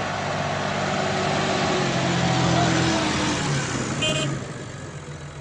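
A tractor engine rumbles loudly close by.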